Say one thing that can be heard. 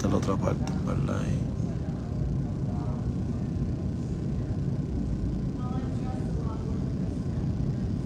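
A man speaks softly and close, through a phone microphone.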